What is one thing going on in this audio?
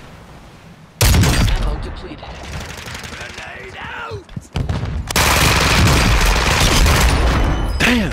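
Rifle gunfire rattles in loud rapid bursts.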